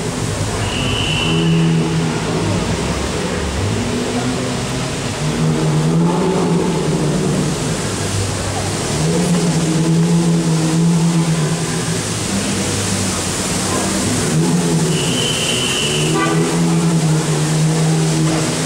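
Powerful car engines idle and rev nearby, their deep rumble rising and falling.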